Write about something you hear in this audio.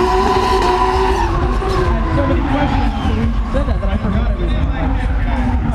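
Tyres screech on the track.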